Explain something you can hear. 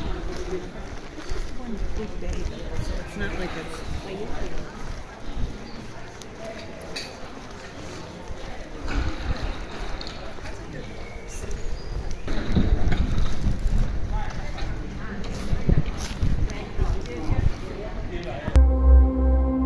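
Footsteps of passers-by tap on wet pavement outdoors.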